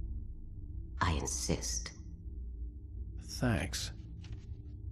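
A younger man answers quietly and briefly.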